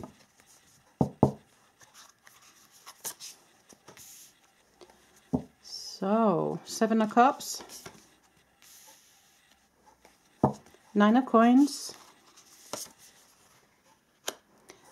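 Cards tap softly as they are laid down on a table.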